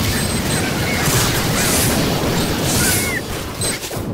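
Explosions boom close by.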